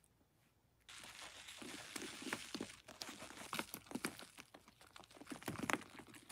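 Water pours onto wet sponges.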